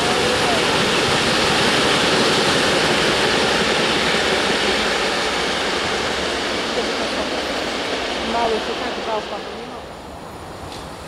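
A freight train rumbles and clatters past close by, then fades away.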